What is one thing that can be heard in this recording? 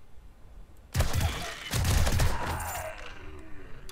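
Rifle shots ring out in a quick burst.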